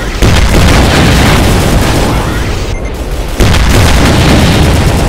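A gun fires rapid crackling energy blasts.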